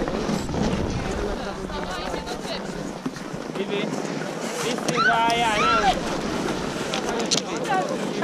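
A crowd of people chatters and shouts nearby outdoors.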